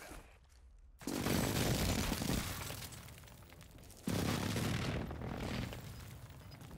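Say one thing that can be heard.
Loud explosions boom and rumble nearby.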